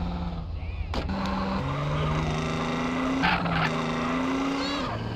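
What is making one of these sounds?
A car engine revs loudly as a car speeds away.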